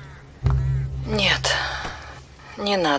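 An elderly woman answers calmly.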